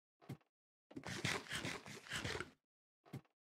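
Food is munched with quick crunching bites.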